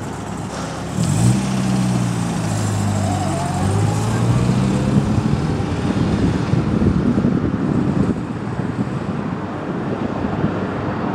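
A vintage four-cylinder sports car accelerates away, its engine revving up.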